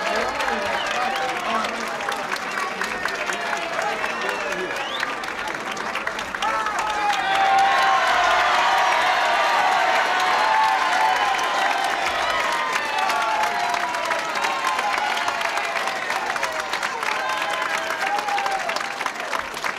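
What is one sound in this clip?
A large crowd cheers and whistles loudly.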